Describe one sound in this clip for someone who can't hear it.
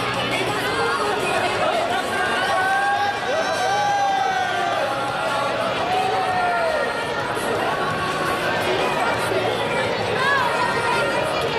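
A large crowd chatters and calls out in a big echoing hall.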